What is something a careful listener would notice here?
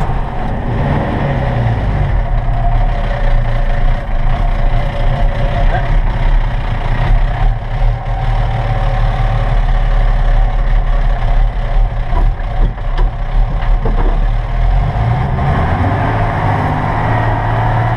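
A diesel off-road vehicle's engine rumbles while it drives over rough ground.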